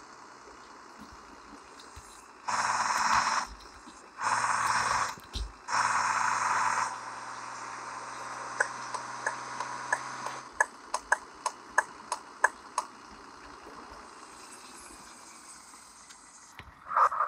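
A simulated bus engine hums as the bus drives along.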